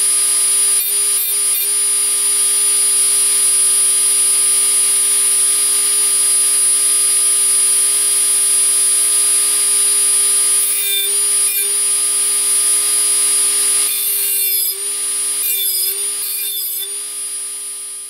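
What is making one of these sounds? A thin metal strip scrapes against a spinning cutting disc in short bursts.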